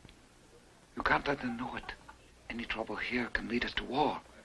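Another middle-aged man answers in a calm voice.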